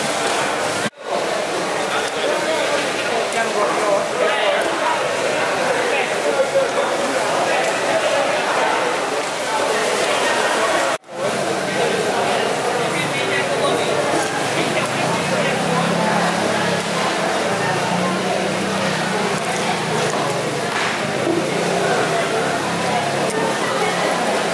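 A crowd of people chatters in a busy, echoing hall.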